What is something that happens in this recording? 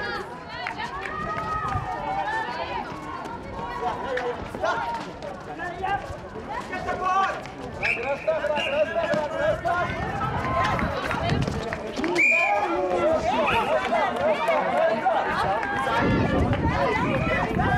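Young women shout and call out to one another.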